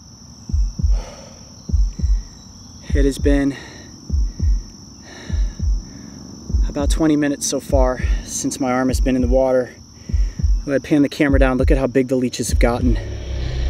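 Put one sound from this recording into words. A man speaks in a strained, pained voice close by.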